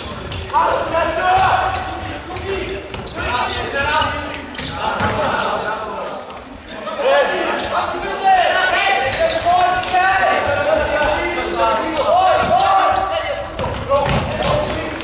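A ball thumps as players kick it in an echoing hall.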